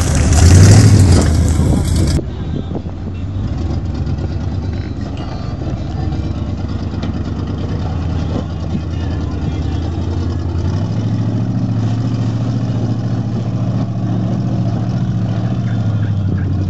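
An off-road vehicle's engine chugs and rumbles close by, growing louder as it climbs.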